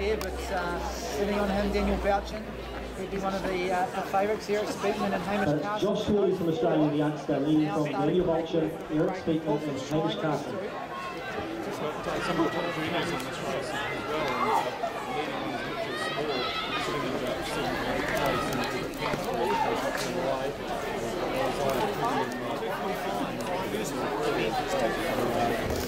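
Spectators talk and cheer nearby, outdoors.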